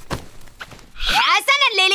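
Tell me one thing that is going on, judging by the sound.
A baby whimpers.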